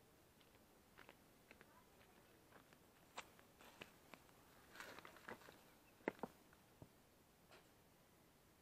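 Footsteps crunch on dry ground and leaves, coming close.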